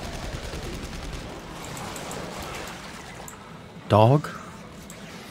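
A gun fires in short bursts during close combat.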